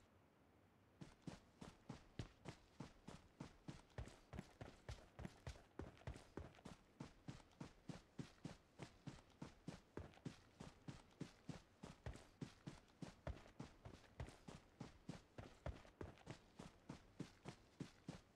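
Footsteps run quickly and steadily over grass.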